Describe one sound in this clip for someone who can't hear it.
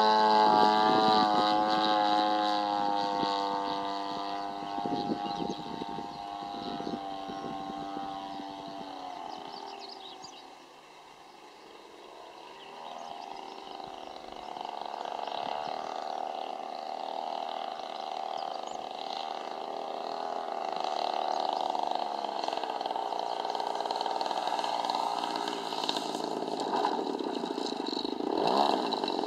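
A small model plane engine buzzes high overhead, fading into the distance and then growing louder as it returns.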